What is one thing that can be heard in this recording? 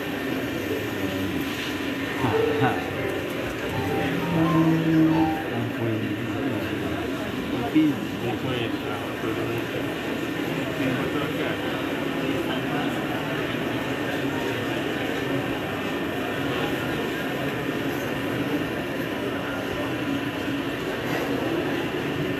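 A large choir sings together in an echoing hall.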